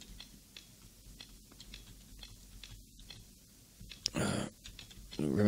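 A combination lock's dials click as they turn.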